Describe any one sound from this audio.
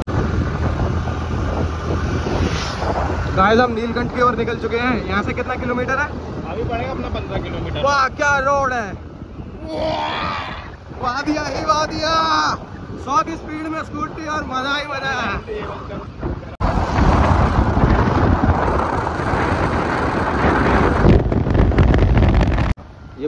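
Wind rushes and buffets loudly past a moving motorbike.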